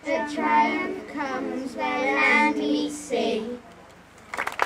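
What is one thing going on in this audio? Children read out together in clear young voices.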